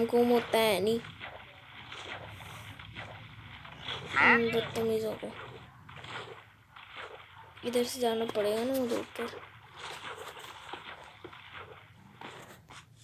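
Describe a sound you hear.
Water splashes softly as a swimmer moves through it.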